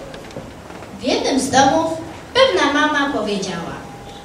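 A boy speaks into a microphone, heard through a loudspeaker.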